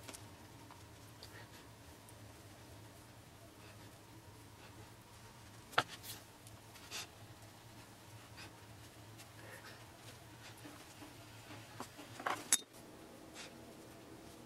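Fingers press and tap on a clay figure.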